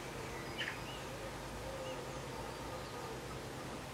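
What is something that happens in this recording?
A metal die handle spins and rattles on a wooden workbench.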